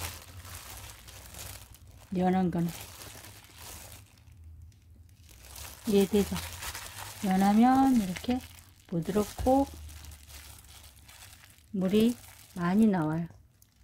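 A plastic glove crinkles as hands squeeze and press soft food.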